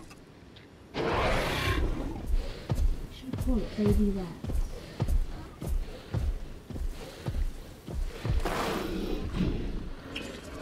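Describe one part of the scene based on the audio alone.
A large dinosaur stomps with heavy, regular thuds.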